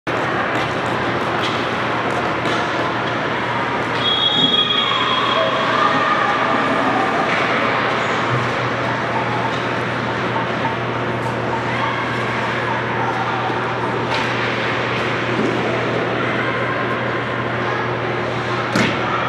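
Hockey sticks clack against the ice and each other.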